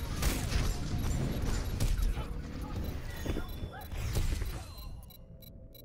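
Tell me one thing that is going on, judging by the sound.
Gunfire and gameplay sound effects rattle rapidly.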